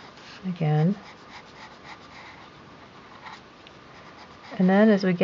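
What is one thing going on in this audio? A pencil scratches softly across paper in short strokes.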